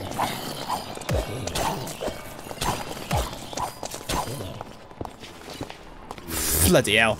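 Zombies groan and grunt in a video game.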